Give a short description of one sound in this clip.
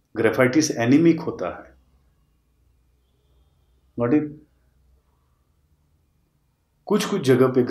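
A middle-aged man speaks calmly and close up, with pauses.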